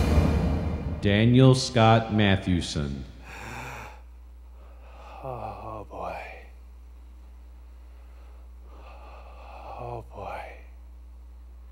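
A man speaks loudly and with strong feeling, close by.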